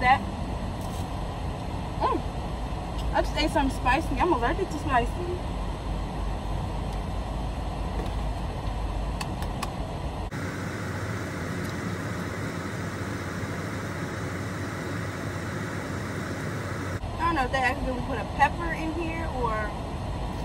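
A young woman crunches on snack chips.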